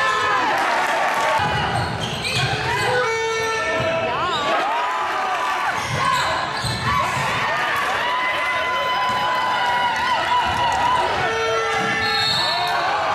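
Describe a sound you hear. A basketball thuds as it bounces on the floor.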